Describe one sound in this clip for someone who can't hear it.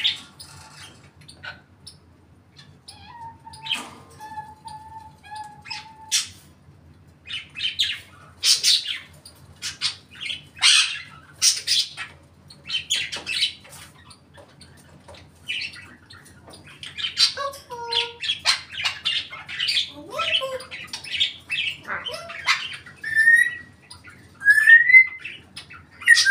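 A parrot chatters, squawks and whistles close by.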